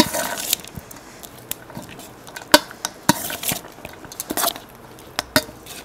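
A metal spoon scrapes and clinks against a steel bowl while stirring rice.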